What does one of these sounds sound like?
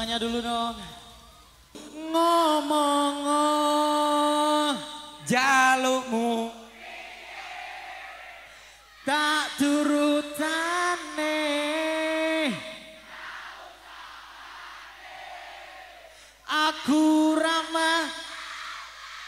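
A man sings long held notes loudly through loudspeakers.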